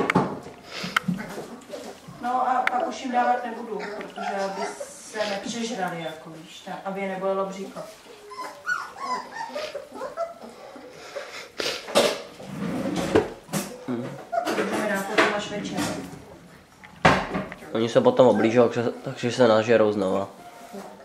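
Puppies lap and slurp noisily from a bowl.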